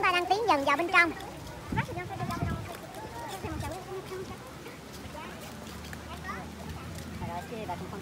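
A group of people talk and murmur nearby outdoors.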